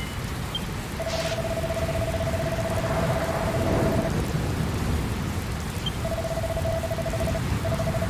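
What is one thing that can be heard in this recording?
A rapid electronic blipping sounds in a steady stream.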